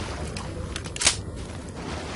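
A pistol clicks as it is reloaded.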